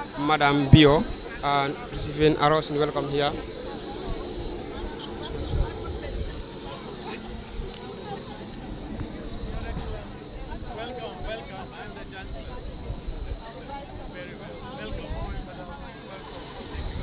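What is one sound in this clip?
A crowd of men and women chat and greet each other nearby outdoors.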